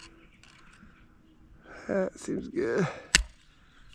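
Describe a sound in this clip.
A screwdriver scrapes as it turns a metal clamp.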